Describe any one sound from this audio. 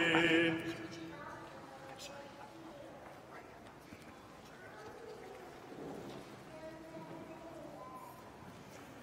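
An elderly man speaks quietly.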